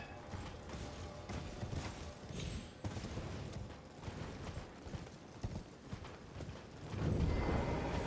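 A horse gallops with quick hoofbeats.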